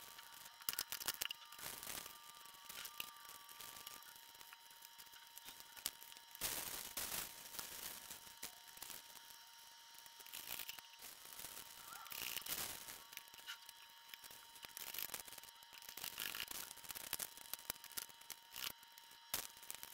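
Plastic wrappers crinkle and rustle as they are stuffed into a plastic bottle.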